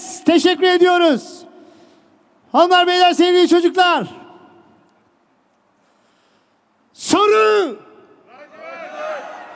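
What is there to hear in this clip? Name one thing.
A man shouts with animation through a microphone and loudspeakers in a large echoing hall.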